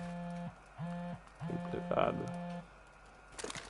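A handheld electronic device beeps in short repeated tones.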